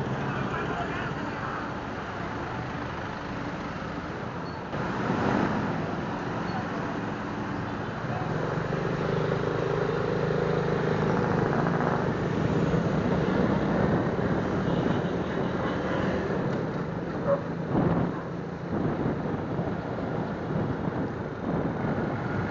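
A motorcycle engine hums steadily while riding along a road.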